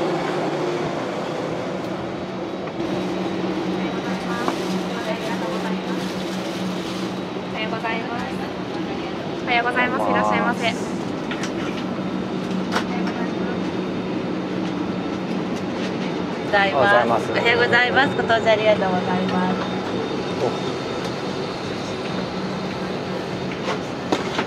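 A steady low hum of an aircraft cabin's air system fills the space.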